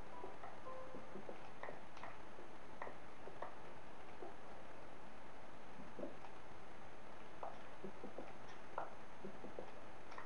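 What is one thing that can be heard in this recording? Soft game tapping sounds of blocks being broken, played through a television.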